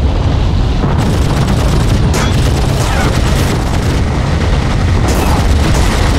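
A machine gun fires in rapid bursts.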